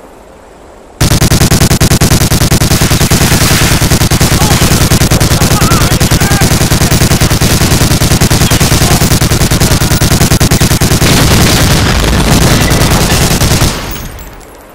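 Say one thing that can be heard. A machine gun fires in rapid, loud bursts.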